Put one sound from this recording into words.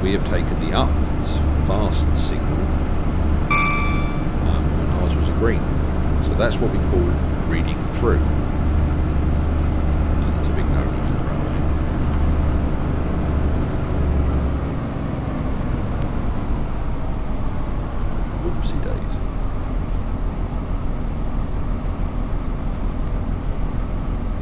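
Train wheels clatter and squeal on the rails.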